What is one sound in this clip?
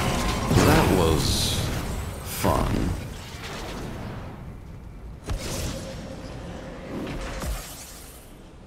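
Fantasy battle effects burst and crackle in a video game.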